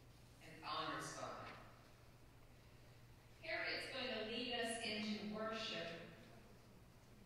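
A woman reads aloud calmly through a microphone in a room with a slight echo.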